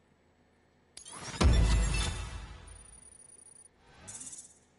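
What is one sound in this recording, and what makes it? A deep electronic boom hits and rings out slowly.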